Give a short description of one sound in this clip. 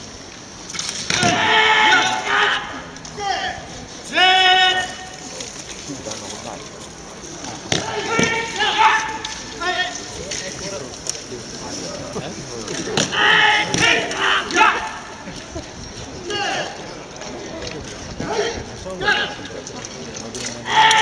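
Men shout loudly in turn outdoors.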